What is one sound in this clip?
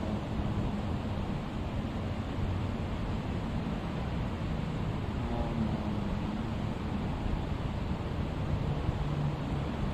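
A man speaks calmly through a loudspeaker in a large echoing hall.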